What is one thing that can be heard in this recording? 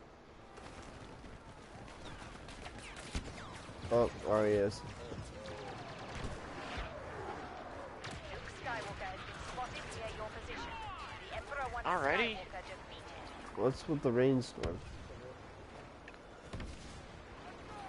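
Blaster rifles fire sharp laser shots in bursts.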